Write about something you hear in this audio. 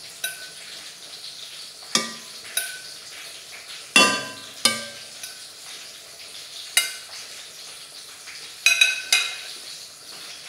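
Metal tongs clink against a ceramic plate.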